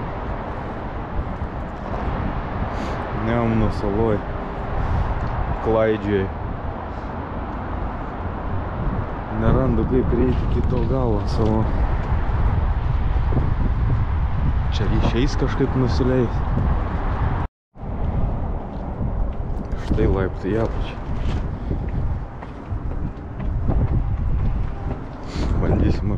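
Wind blows outdoors and rumbles against the microphone.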